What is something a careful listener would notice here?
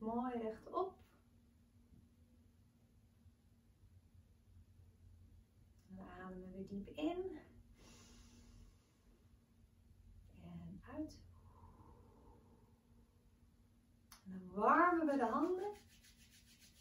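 A young woman speaks calmly and softly, close by, with long pauses.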